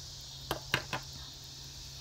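Hands tap and press paper down on a table.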